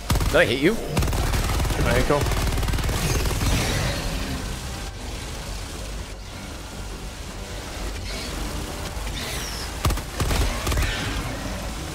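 Large explosions boom and rumble.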